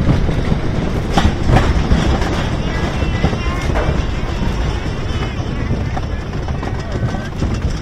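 A lift chain clanks steadily as the car climbs.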